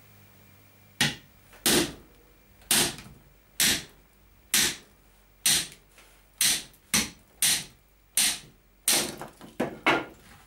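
A mallet knocks a blade into a log in sharp, steady blows.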